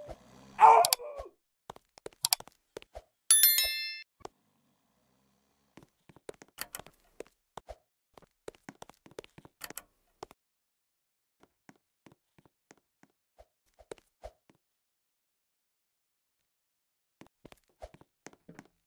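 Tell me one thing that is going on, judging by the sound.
Quick footsteps patter on a wooden floor.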